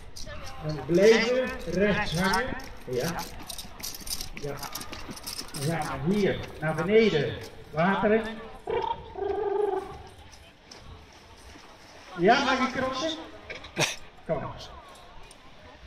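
A man announces with animation over a loudspeaker outdoors.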